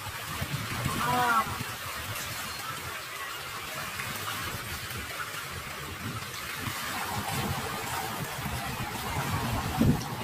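Wind blows across the open water.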